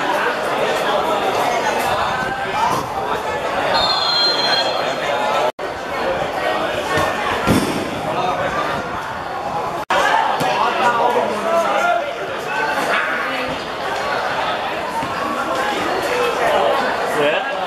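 Young men shout to each other across an open football pitch outdoors.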